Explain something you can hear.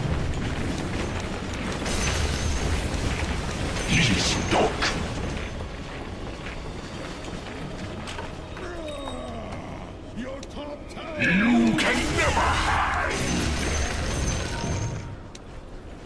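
Game spells blast and crackle during a fight.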